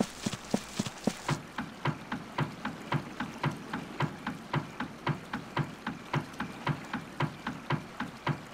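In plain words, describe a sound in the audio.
Footsteps thud steadily on wooden bridge planks.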